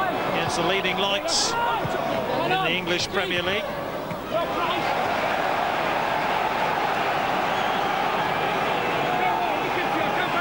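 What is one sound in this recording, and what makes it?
A large crowd roars and chants in a stadium.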